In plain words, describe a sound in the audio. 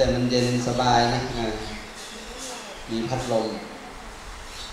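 A man speaks calmly through a microphone and loudspeaker.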